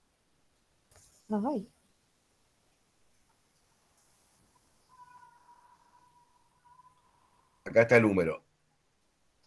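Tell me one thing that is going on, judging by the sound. A man speaks briefly over an online call.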